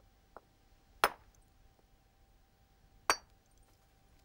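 A stone strikes flint with sharp, ringing cracks.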